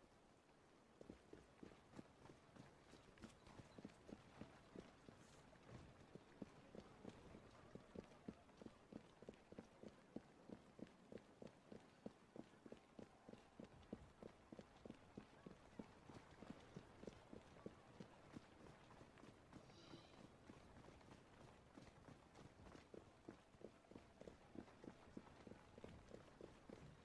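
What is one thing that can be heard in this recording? Footsteps tap quickly on stone pavement.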